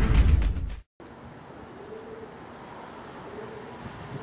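Footsteps slap on wet pavement outdoors.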